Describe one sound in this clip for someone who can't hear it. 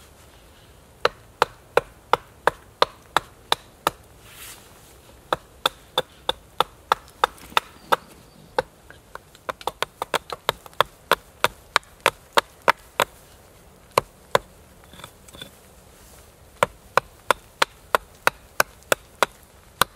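A hatchet chops into a wooden branch with sharp, regular knocks.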